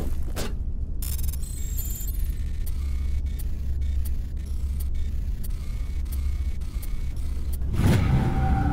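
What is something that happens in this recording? Electronic interface beeps chirp at short intervals.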